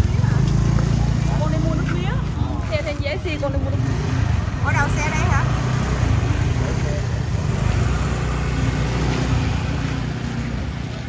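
Motorbike engines rumble and idle nearby.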